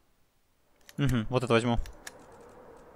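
A brief loud game sound effect plays as the selection changes.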